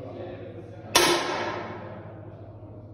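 An air rifle fires a single sharp shot that rings briefly in a large room.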